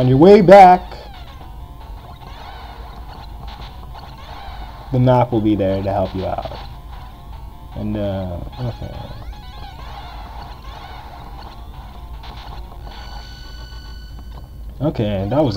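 Electronic game tones beep and warble steadily.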